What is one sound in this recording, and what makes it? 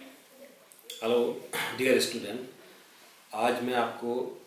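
A middle-aged man speaks calmly and clearly to a close microphone.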